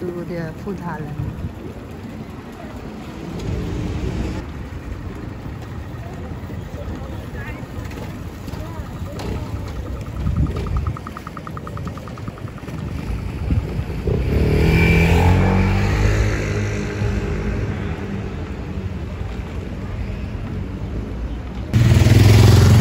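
Busy street noise murmurs steadily outdoors.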